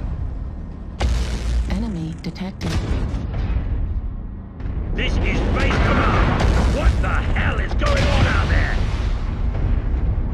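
Laser weapons fire with sharp buzzing blasts.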